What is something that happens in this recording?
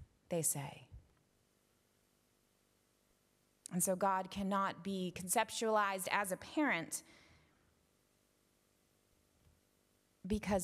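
A young woman speaks calmly through a microphone, with pauses, in a reverberant room.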